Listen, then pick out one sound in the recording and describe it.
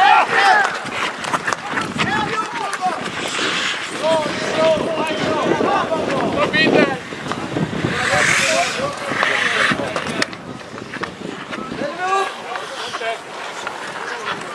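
Men shout to each other across an open rink.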